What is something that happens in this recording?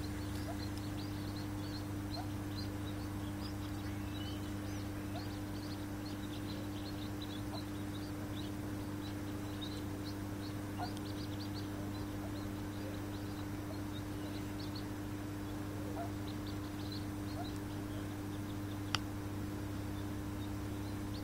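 Ducklings peep softly and rapidly close by.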